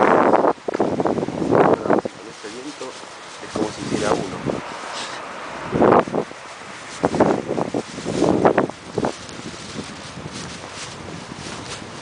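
Footsteps walk along a paved sidewalk outdoors.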